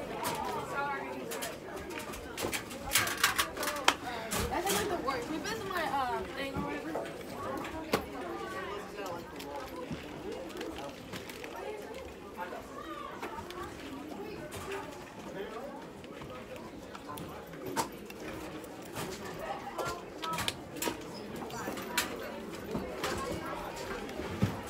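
Metal locker doors clank and bang.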